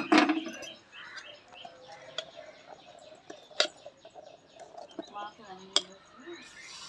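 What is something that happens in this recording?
A metal spoon stirs and taps against a pot.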